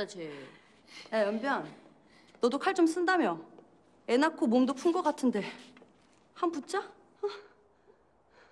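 A young woman speaks tauntingly, close by.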